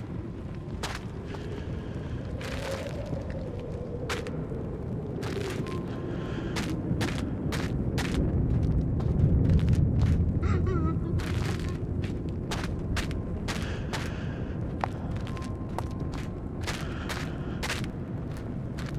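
Flames roar with a low rumble.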